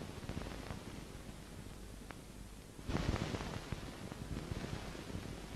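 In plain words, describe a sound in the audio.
Metal dishes clink and clatter softly.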